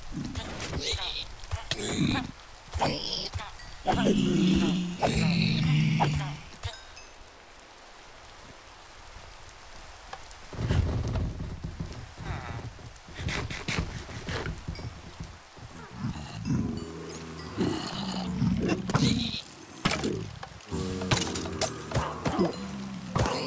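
Creatures grunt and snort.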